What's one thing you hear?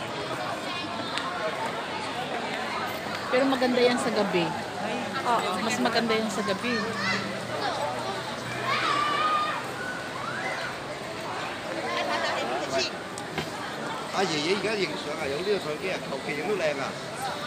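A crowd of men and women chatters all around outdoors.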